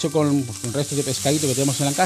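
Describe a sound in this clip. Liquid pours into a sizzling pan.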